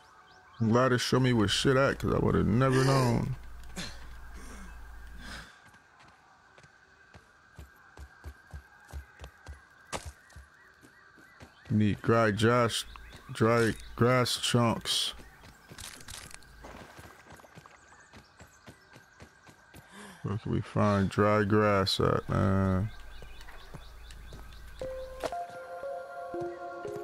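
Footsteps patter quickly on dry ground.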